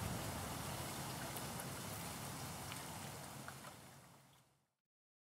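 Small waves ripple and lap on open water.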